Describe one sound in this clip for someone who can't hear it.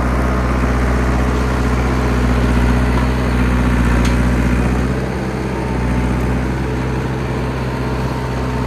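Steel tracks clank and squeal as a bulldozer crawls through snow.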